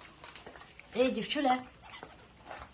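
A puppy yelps and whines briefly up close.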